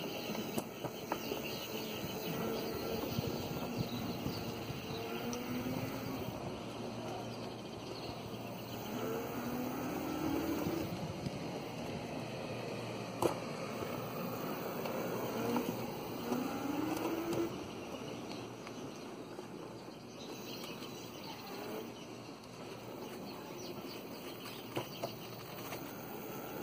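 Small wheels roll and rumble over concrete.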